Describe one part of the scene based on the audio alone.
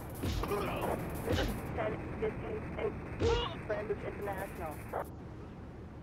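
Punches land with dull thuds in a scuffle.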